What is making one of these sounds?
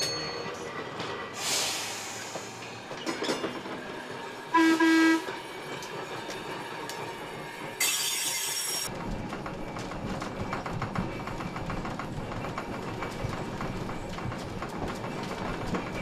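A tram rumbles and clatters along rails.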